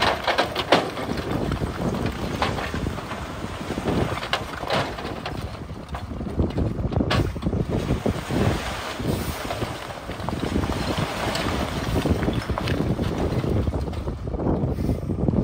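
Soil and rocks tumble and slide out of a tipping dump truck bed.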